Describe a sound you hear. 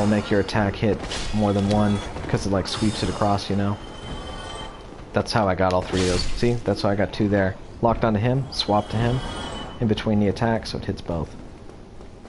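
Sword blows slash and thud in quick succession.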